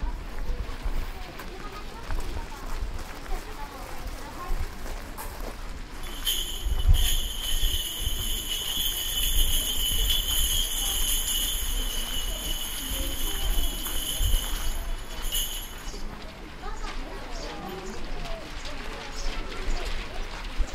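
Visitors talk quietly in the distance outdoors.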